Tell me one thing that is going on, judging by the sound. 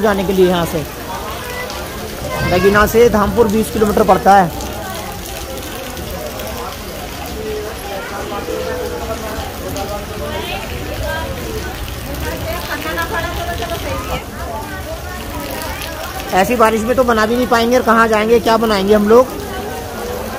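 Heavy rain pours steadily onto a roof and the ground outdoors.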